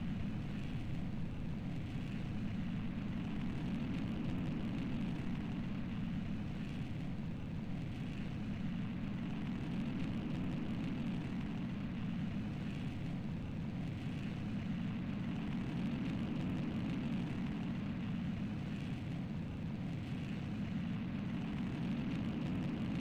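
A rocket engine roars steadily.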